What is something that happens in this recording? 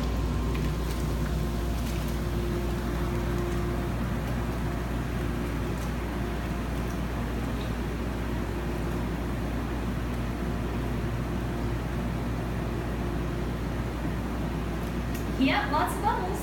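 Water churns and bubbles steadily in a jetted tub.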